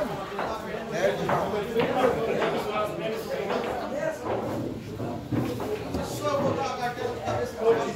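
A cue tip strikes a pool ball.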